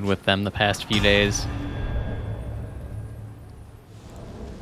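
A deep victory chime swells and rings out.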